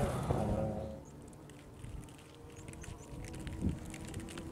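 A car engine hums far off.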